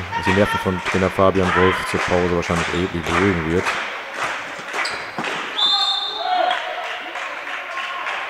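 Sneakers squeak on a hard court in an echoing hall.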